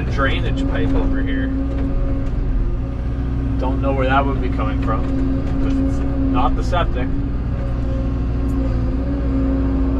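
An excavator bucket scrapes and digs into dirt.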